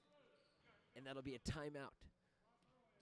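A man shouts loudly in a large echoing gym.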